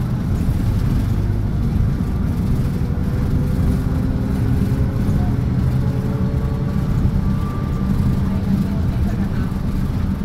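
Cars pass by outside a bus window.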